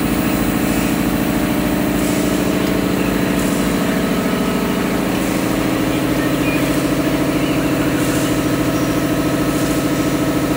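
Industrial machinery hums steadily.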